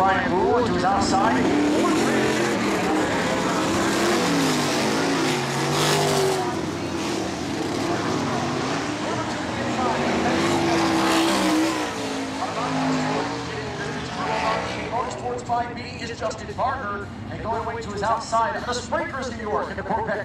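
Race car engines roar and whine as cars speed around a track outdoors.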